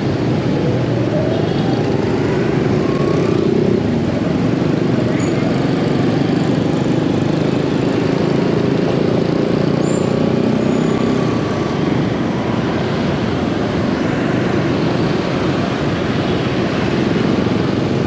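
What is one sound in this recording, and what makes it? Many motor scooter engines hum and buzz in dense city traffic.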